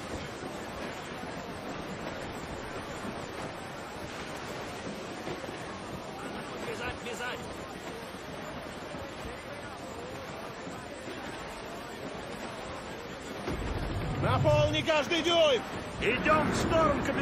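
Waves wash and splash against a sailing ship's hull.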